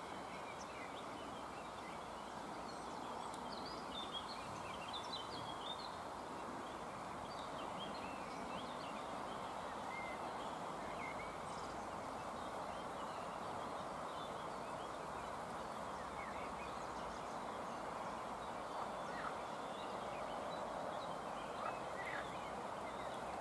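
Water ripples and laps gently, outdoors.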